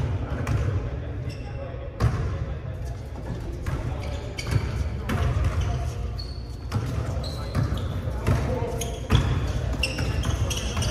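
A basketball bounces on a hard floor in a large echoing gym.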